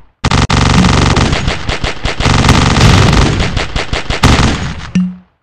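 Video game gunshots fire in quick bursts.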